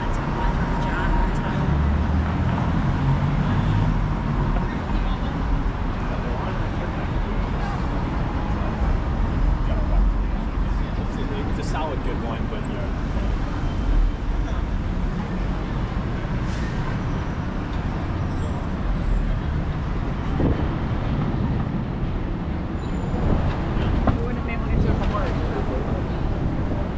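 City traffic rumbles steadily nearby outdoors.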